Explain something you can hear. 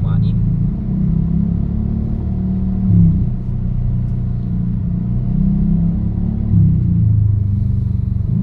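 A car's engine hums low, heard from inside the car as it drives in slow traffic.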